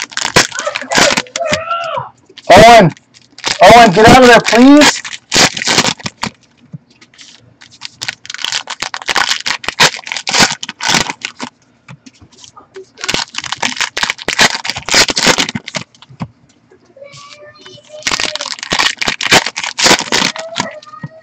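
Foil wrappers crinkle and rustle up close.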